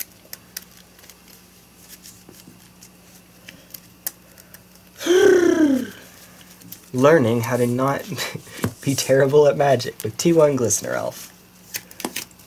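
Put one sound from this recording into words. Playing cards tap and slide softly on a mat.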